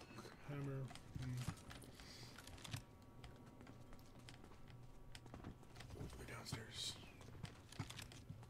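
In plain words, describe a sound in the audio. Game footsteps patter quickly on a hard floor.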